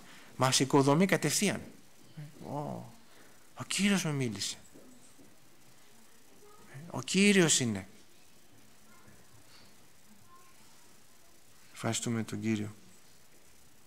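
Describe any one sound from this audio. A middle-aged man speaks with emphasis into a microphone, pausing between phrases.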